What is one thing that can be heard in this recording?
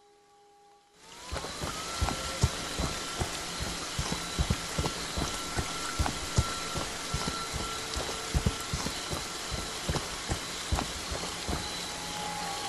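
Heavy footsteps thud along a dirt path.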